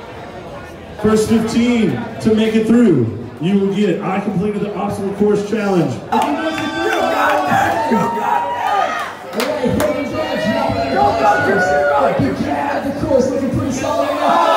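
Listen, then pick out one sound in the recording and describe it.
A man speaks with animation through a microphone and loudspeaker in a large echoing hall.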